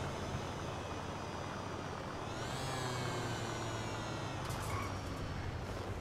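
A scooter engine hums and revs as it rides along.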